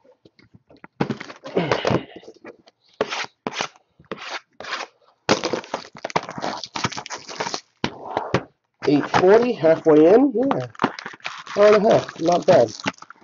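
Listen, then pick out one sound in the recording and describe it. Cardboard boxes scrape and knock against each other.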